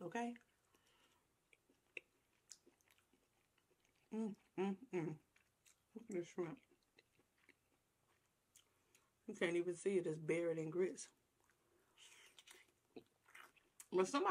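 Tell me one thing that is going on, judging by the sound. A young woman chews food wetly.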